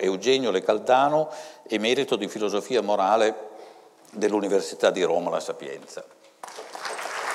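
An elderly man reads out aloud through a microphone in an echoing hall.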